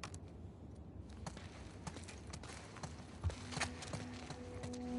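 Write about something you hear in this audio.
Footsteps crunch on leafy ground at a walking pace.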